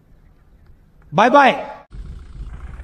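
A man speaks forcefully into a microphone, heard through loudspeakers.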